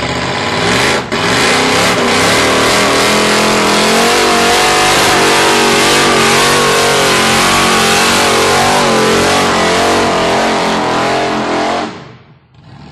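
Tyres screech as they spin on pavement.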